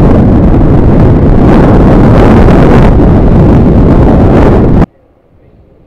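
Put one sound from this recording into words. Wind roars loudly past a riding motorcycle and then suddenly stops.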